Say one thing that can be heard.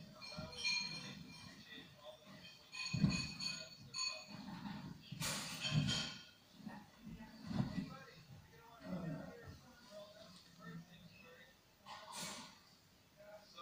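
Fabric rustles as a man handles bedding.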